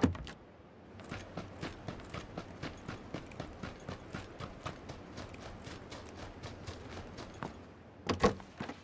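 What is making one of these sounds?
Footsteps run quickly over grass outdoors.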